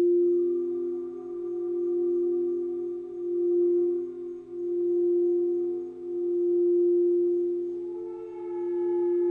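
A gong is struck softly and rings on.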